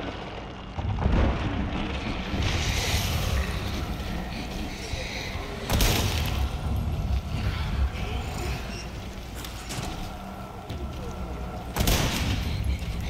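A rifle fires loud, booming shots that echo.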